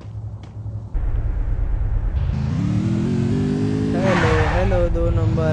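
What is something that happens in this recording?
A motorbike engine roars and revs.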